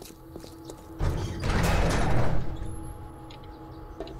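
A heavy metal door swings open with a loud rumble.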